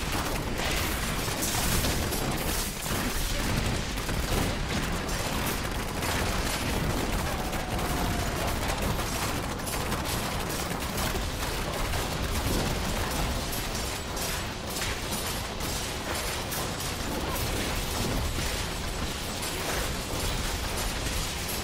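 Magic spells crackle and blast in quick succession.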